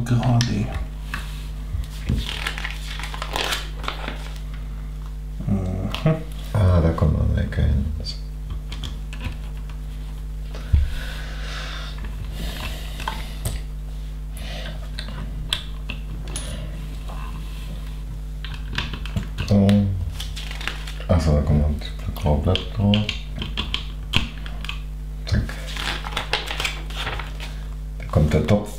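Small plastic pieces click and clatter on a table.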